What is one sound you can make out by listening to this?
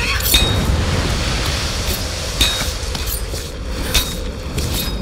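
Hands slap and scrape against rock as a climber pulls upward.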